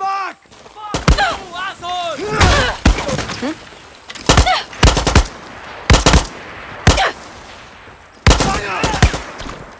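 A rifle fires loud shots in short bursts.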